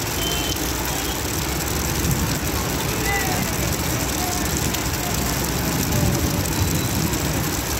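A diesel bus engine runs.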